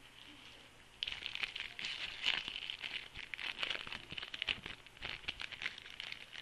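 A foil wrapper crinkles and tears loudly.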